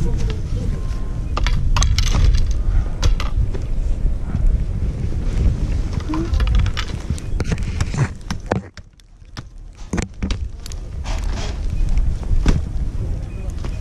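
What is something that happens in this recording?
Ski poles knock and clatter against each other.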